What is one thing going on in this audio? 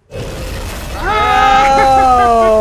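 A young woman screams excitedly close by.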